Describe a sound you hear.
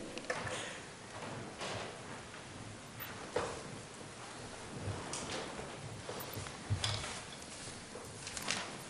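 An elderly man speaks through a microphone in a large room.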